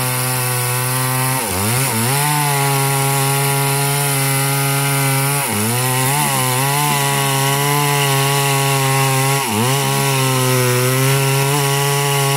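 A chainsaw roars loudly while cutting through a log, briefly dipping in pitch now and then.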